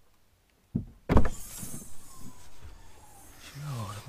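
A car boot lid opens with a thud.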